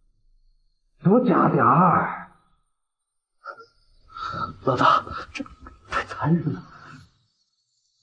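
A man speaks.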